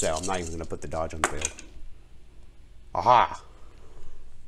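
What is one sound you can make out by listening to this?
Dice clatter and roll across a felt-lined wooden tray.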